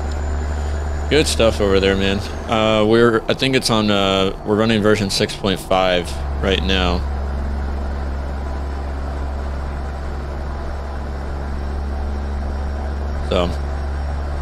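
A truck engine hums steadily at low speed.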